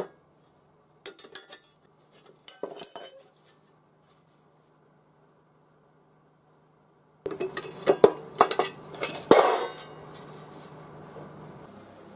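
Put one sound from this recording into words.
Sheet metal rattles and scrapes as it is bent and handled.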